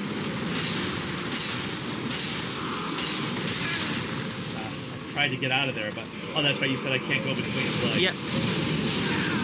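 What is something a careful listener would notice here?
A video game monster roars amid rumbling combat sounds.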